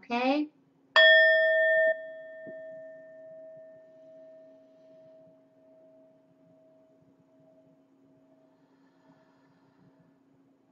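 A metal singing bowl is struck once and rings out, slowly fading.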